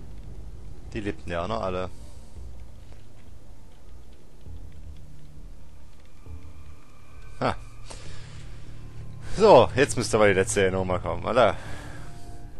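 A young man talks casually close to a microphone.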